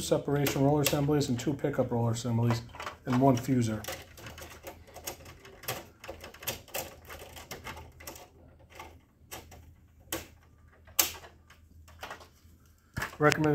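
Plastic parts click and knock inside a machine.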